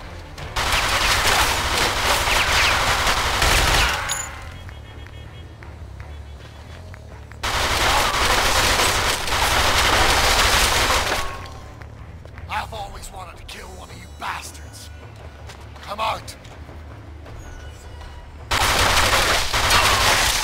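Guns fire in long, rapid bursts, loud and close.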